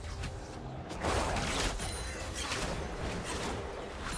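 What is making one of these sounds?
Fighting sound effects clash and whoosh in a video game.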